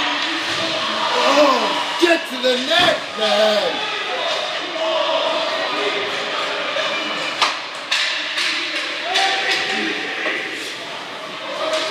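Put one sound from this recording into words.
Ice skates scrape across the ice.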